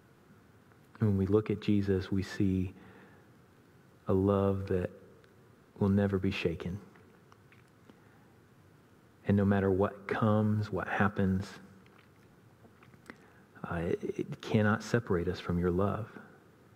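A man speaks close by in short, halting bursts with long pauses.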